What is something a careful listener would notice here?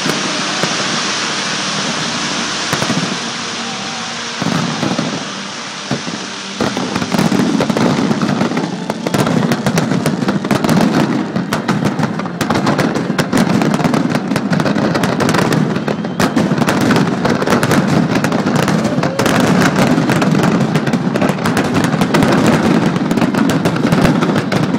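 Fireworks burst with booms.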